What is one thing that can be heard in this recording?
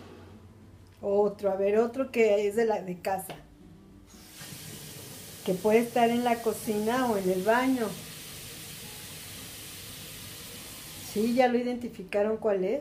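An older woman speaks calmly and closely, as if over an online call.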